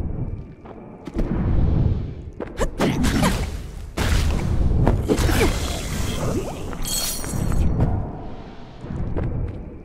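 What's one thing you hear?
Sword slashes and impacts clash with loud thuds.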